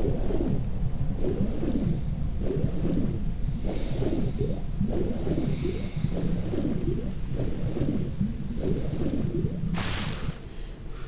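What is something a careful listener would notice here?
Water bubbles and gurgles underwater.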